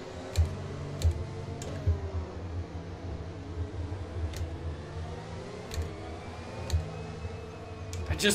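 Sharp clicks of gear shifts sound now and then.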